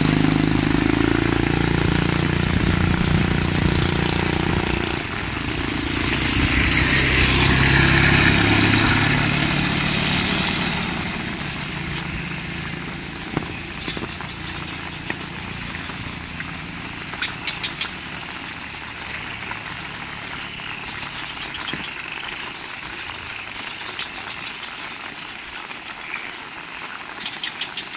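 Heavy rain pours down and splashes on a wet street outdoors.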